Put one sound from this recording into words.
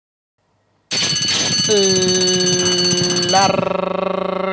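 A starting bell rings loudly.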